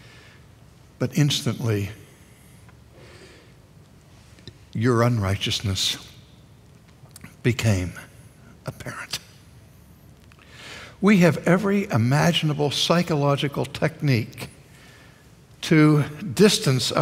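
An elderly man speaks with animation through a microphone, in short bursts with pauses.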